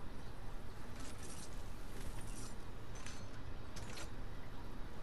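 Short clicks sound as items are picked up.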